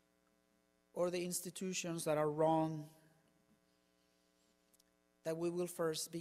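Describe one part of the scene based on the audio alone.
A man speaks calmly into a microphone, heard through a loudspeaker in an echoing hall.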